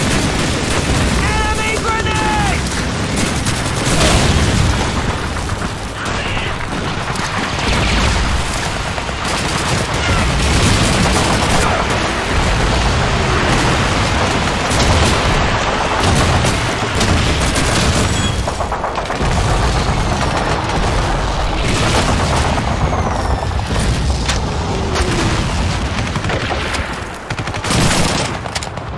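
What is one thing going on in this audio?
Gunfire and explosions rumble constantly all around.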